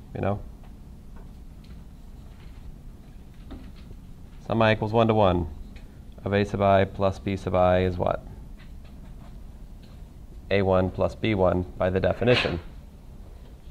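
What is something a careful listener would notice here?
A man speaks calmly, with pauses.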